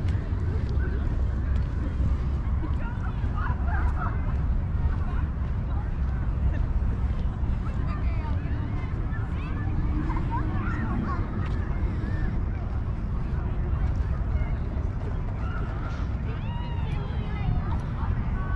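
Wind blusters steadily against the microphone outdoors.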